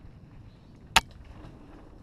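A sharp knock sounds once as a bike jolts.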